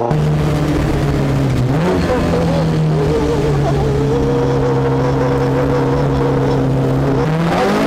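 A man shouts excitedly close by inside a car.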